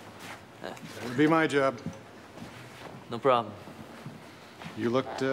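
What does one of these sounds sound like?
A middle-aged man talks warmly, close by.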